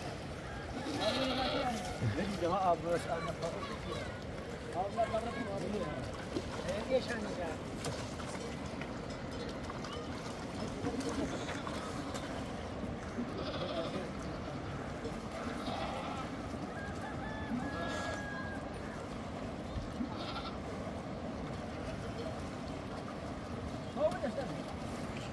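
A goat bleats.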